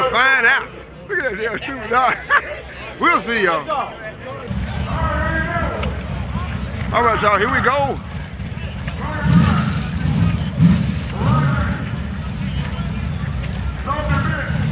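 Men talk and shout loudly close by in an outdoor crowd.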